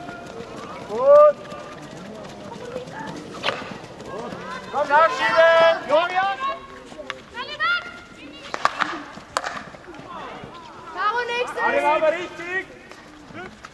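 Young women shout to one another across an outdoor field.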